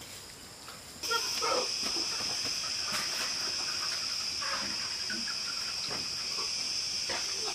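A concrete block knocks and scrapes as it is set into wet cement.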